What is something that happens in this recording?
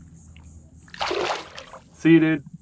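A fish splashes in the water as it is released.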